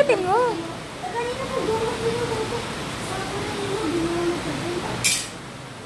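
A young boy talks excitedly close by.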